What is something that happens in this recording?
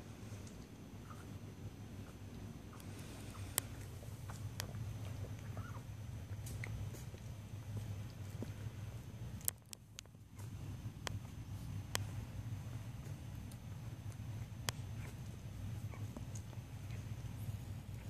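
Newborn puppies squeak and whimper faintly.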